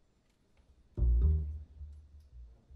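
A double bass plays deep notes.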